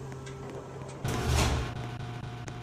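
A door opens with a short thump.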